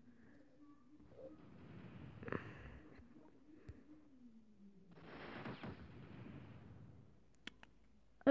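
Ship cannons fire in rumbling bursts.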